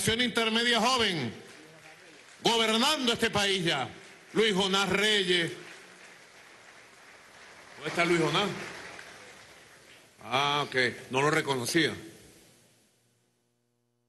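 A man speaks with animation through a loudspeaker, echoing outdoors.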